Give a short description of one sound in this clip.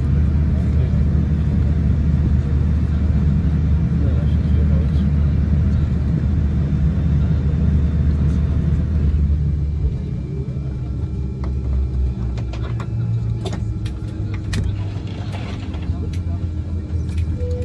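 A jet engine hums steadily from inside an aircraft cabin, then quiets as the plane slows.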